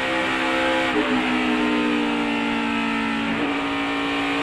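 A race car engine shifts gears with a sudden change in pitch.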